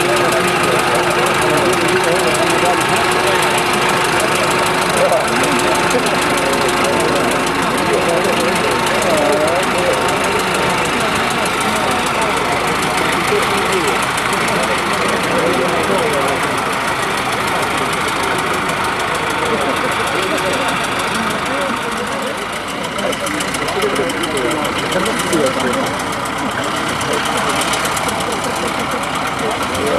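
An old tractor engine chugs steadily nearby.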